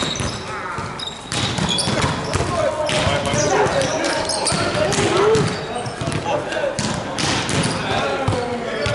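A volleyball smacks off hands and the floor, echoing in a large hall.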